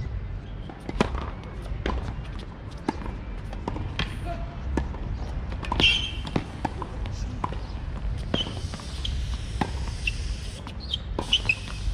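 A tennis ball is struck hard by a racket.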